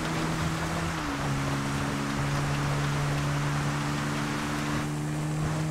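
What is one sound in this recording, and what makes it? A quad bike engine drones as it rides.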